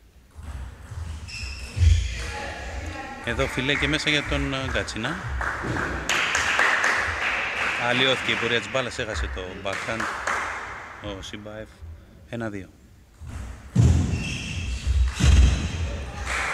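A table tennis ball clicks back and forth on paddles and table.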